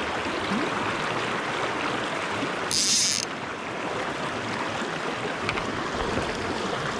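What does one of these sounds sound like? A shallow river rushes and gurgles steadily over rocks close by.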